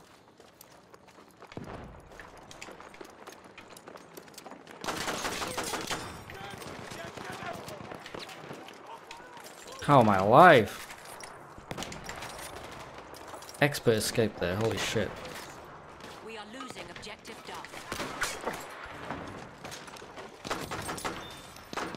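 A pistol fires sharp shots in quick bursts.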